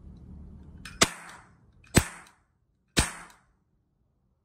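A cap gun fires loud, sharp bangs.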